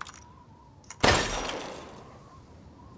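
A pistol fires a single loud shot that rings out briefly.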